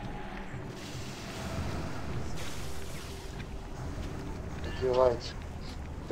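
Spell effects whoosh and crackle in a busy fight.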